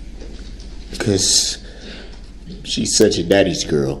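A man speaks tearfully, his voice breaking.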